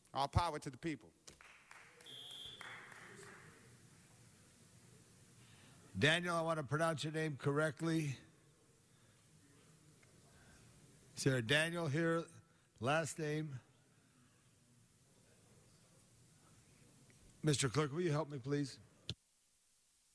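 An older man speaks calmly into a microphone, pausing between phrases.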